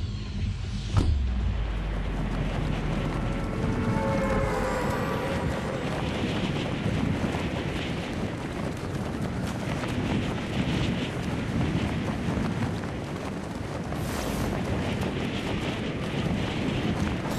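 Wind rushes steadily past during a fall through the air.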